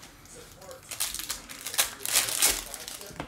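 A foil wrapper crinkles as it is torn open.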